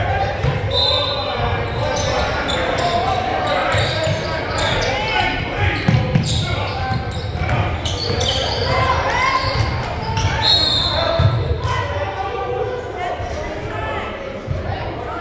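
Players shout and call out in a large echoing gym.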